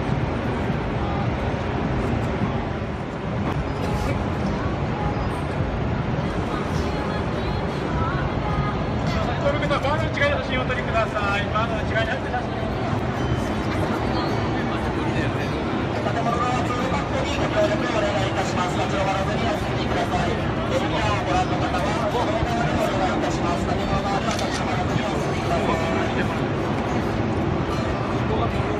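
A large outdoor crowd chatters and murmurs all around.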